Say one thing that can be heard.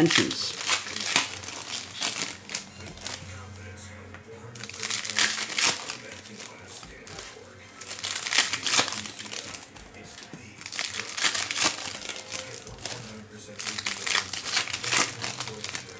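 Foil wrappers crinkle and tear open.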